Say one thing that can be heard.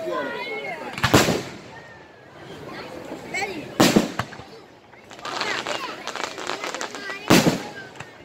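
Fireworks burst with loud booms.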